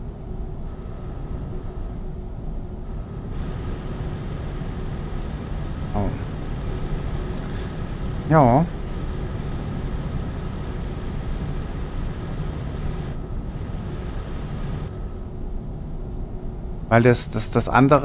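A diesel truck engine drones at cruising speed.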